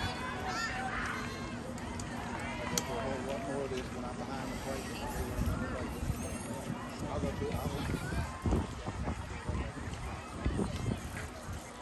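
A crowd of spectators chatters and cheers nearby outdoors.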